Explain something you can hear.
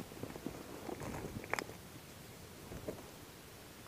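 Footsteps crunch on dry dirt and grass.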